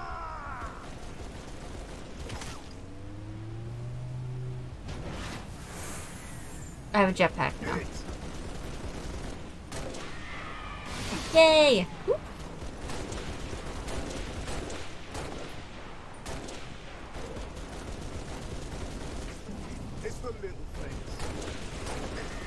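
Rifle shots fire in sharp bursts.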